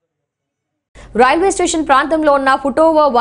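A young woman reads out news clearly into a microphone.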